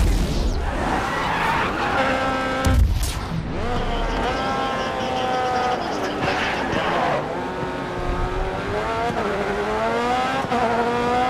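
A racing car engine whines loudly, rising in pitch and dropping with each gear change.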